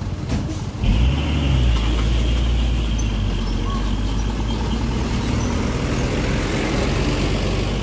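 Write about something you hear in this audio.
A heavy truck drives slowly past on a dirt road.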